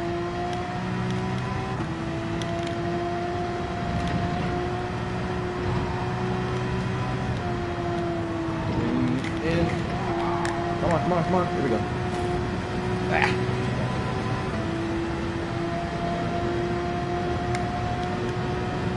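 A racing car engine drones steadily at high speed, shifting pitch as it changes gear.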